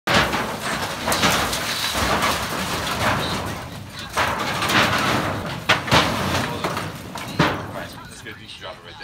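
Sheet metal scrapes and rattles as it is dragged over the ground.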